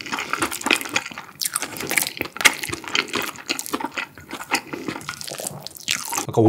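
A young man chews food loudly and wetly, close to a microphone.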